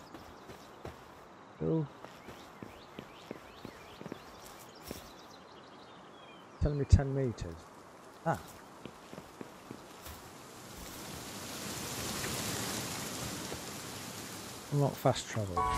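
Footsteps tap lightly on stone and grass.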